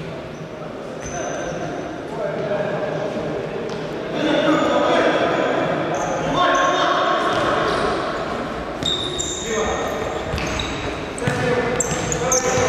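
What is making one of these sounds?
Sneakers squeak sharply on a hard indoor court.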